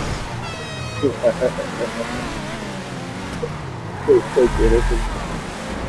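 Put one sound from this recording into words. Tyres screech as a car skids around a corner.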